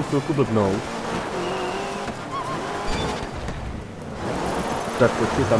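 A rally car engine roars and revs.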